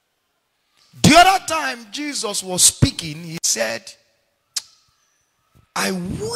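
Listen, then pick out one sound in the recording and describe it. A man preaches with animation into a microphone.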